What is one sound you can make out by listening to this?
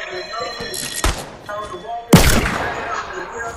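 Gunshots fire in sharp, loud bursts.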